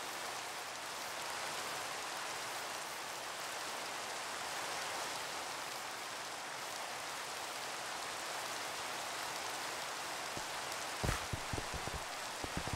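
Steady rain falls and patters all around.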